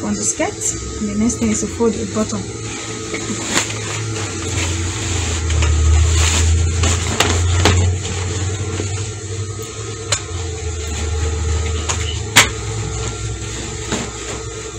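Cloth rustles and crumples as it is handled.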